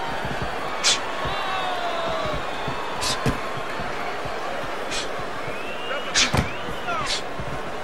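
Boxing gloves thud against a body in sharp punches.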